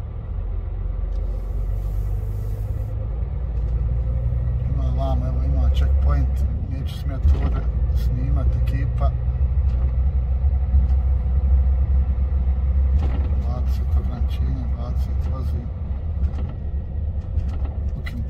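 A truck engine rumbles low and steady from inside the cab.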